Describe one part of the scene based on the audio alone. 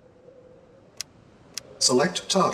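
A game menu button clicks.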